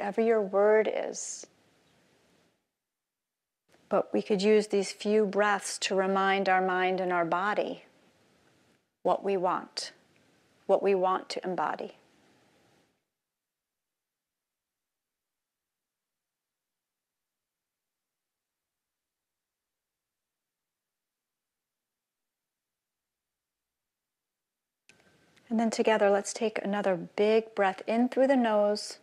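A middle-aged woman speaks calmly and clearly into a microphone, pausing between phrases.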